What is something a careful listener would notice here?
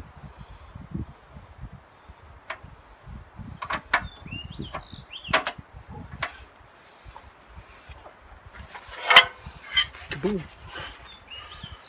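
Metal fittings clink and click close by.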